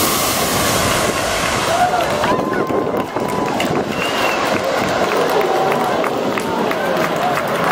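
A crowd of people cheers and shouts outdoors.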